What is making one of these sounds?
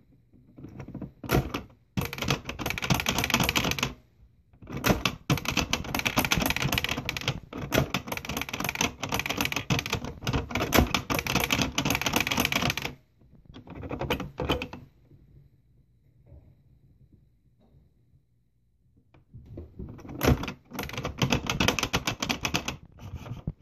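A toy computer plays bright electronic sounds.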